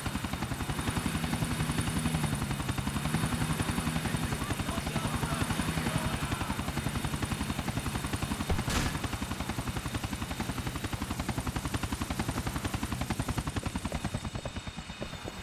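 A helicopter's rotor thumps rapidly and steadily overhead.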